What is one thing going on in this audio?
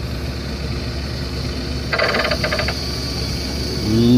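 A claw machine's motor whirs as the claw moves.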